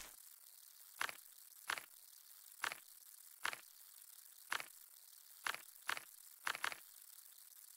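Soft clicks tap in a steady series.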